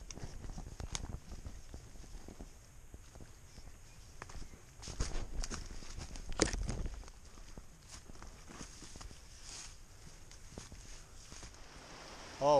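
Footsteps run through rustling undergrowth.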